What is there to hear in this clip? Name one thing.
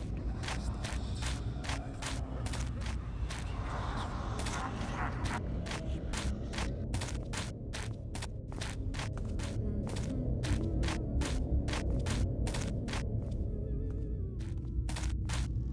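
Footsteps walk steadily over stone.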